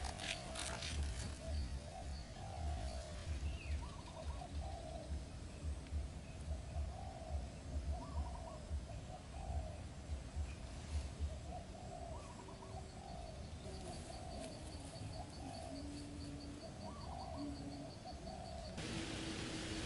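A small bird chirps softly and repeatedly close by.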